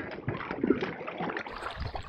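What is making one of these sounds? A hooked fish thrashes and splashes at the water's surface.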